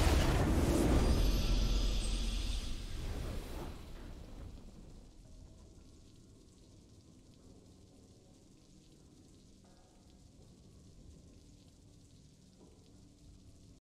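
A triumphant fanfare swells and slowly fades.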